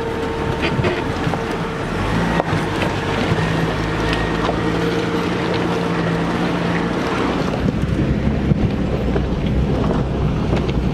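Off-road tyres crunch over dirt and stones.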